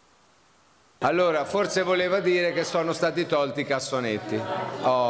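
A middle-aged man speaks with animation into a microphone in an echoing room.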